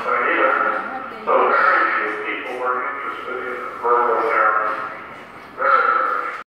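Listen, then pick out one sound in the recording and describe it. A middle-aged man talks calmly through a loudspeaker.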